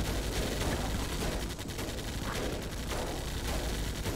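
A fire crackles and roars.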